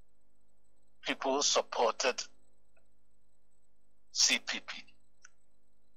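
A man speaks in short bursts through a microphone.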